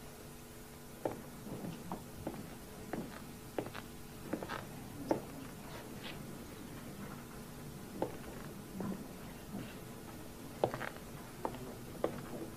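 Footsteps tap across a hard floor.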